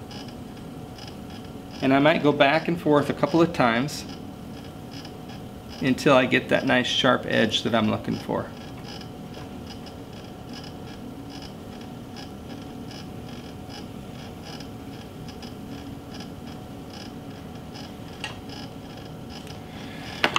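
A potter's wheel whirs steadily.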